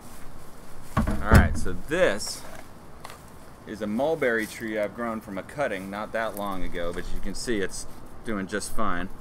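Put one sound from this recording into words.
Leafy branches rustle as they are handled.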